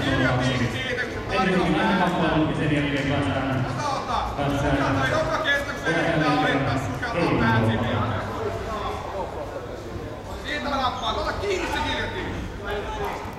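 Men shout with animation nearby in a large echoing hall.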